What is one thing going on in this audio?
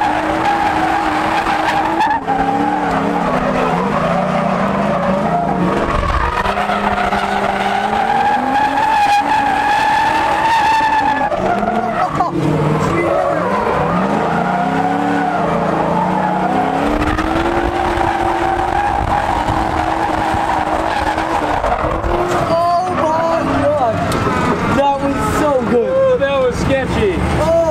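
A car engine revs hard and roars close by.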